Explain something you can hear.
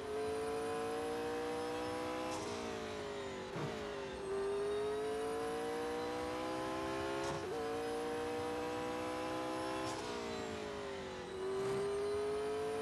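A racing car engine roars at high revs, rising in pitch and dropping sharply with each gear shift.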